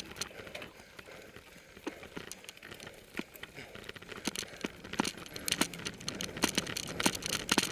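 A bicycle chain and frame rattle and clatter over bumps.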